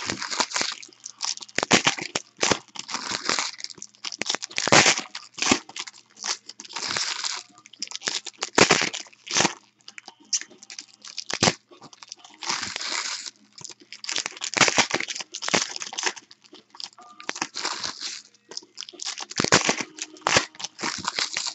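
Foil packs crinkle and rustle in hands.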